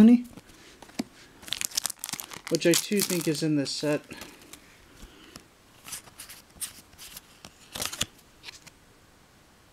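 Trading cards and foil packs rustle and click in someone's hands.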